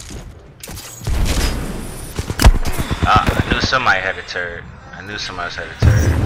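Rapid gunshots ring out in a video game.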